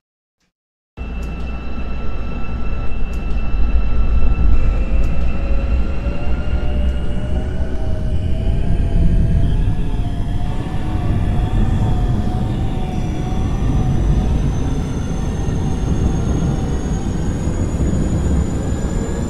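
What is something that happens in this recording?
A train rumbles along as its electric motor whines and slowly rises in pitch.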